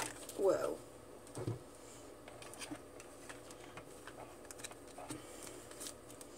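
A card slides and taps on a tabletop.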